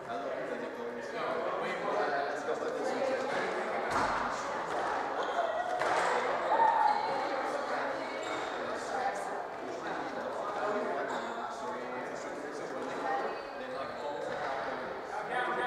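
A squash ball smacks sharply off rackets and walls.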